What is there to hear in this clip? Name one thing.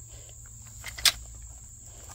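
Garden loppers snip through a weed stem with a sharp click.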